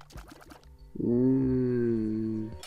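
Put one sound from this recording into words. A game monster lets out a long, low groan.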